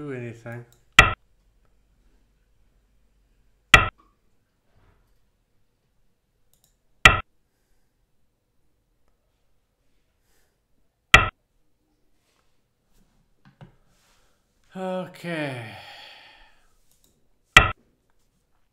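A game stone clicks sharply onto a board now and then.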